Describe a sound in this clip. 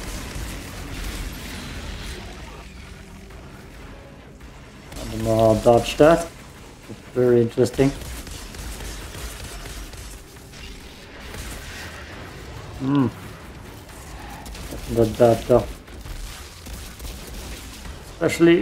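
Gunfire and energy blasts crackle in a video game.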